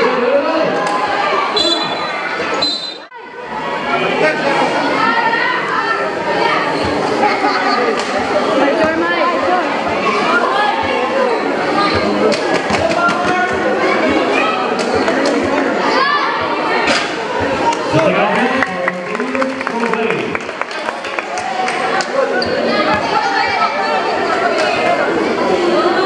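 A basketball bounces on a concrete court.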